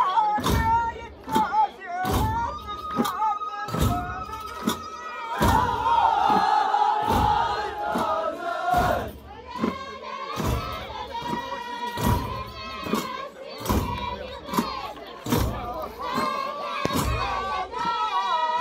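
A group of men sing and chant together loudly.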